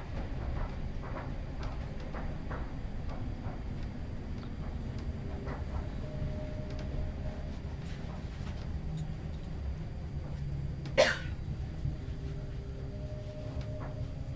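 A train rumbles steadily along the tracks.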